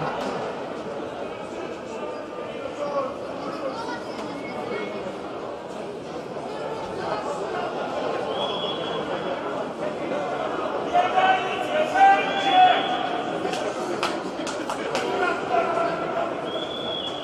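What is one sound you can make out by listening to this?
A crowd murmurs and chatters in a large echoing arena.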